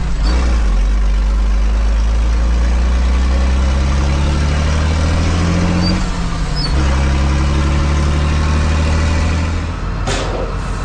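A tractor engine rumbles loudly from inside the cab.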